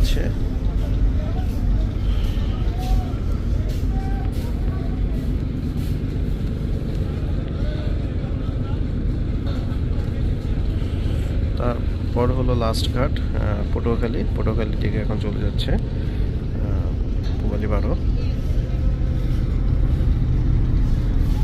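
A boat engine rumbles low and steady.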